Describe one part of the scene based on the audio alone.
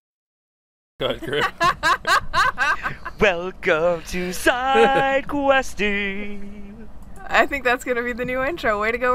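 A young man laughs loudly over an online call.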